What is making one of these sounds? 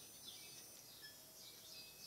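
A computer mouse clicks softly.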